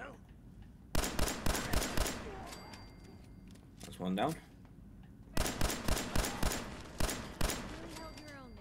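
Rapid bursts of gunfire rattle in quick succession.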